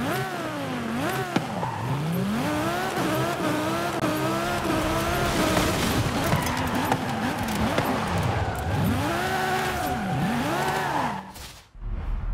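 A race car engine roars and revs up and down through the gears.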